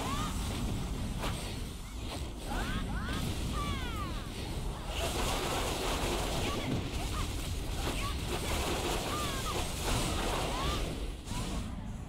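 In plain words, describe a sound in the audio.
Magic blasts and sword strikes crash in rapid bursts.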